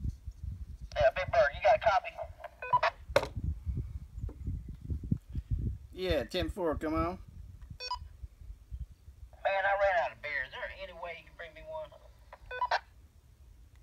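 A voice answers over a two-way radio with a thin, crackly sound.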